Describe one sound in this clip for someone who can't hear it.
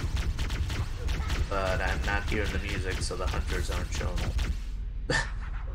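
Rapid gunfire rattles in a video game.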